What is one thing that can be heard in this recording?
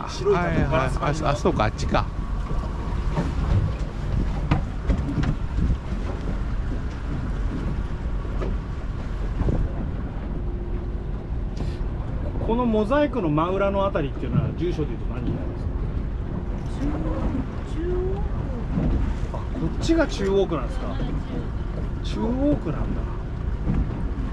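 Wind buffets loudly against the boat.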